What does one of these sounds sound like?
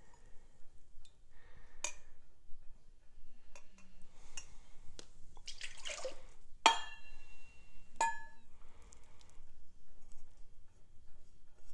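Thick liquid pours into a metal cup.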